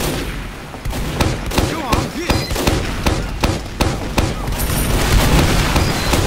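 A rapid-firing gun rattles in loud bursts.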